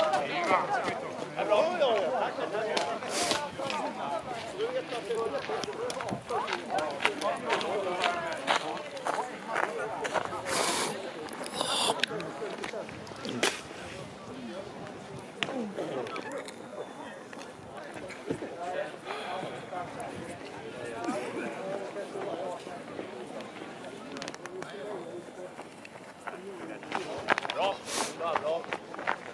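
Running shoes crunch on packed snow.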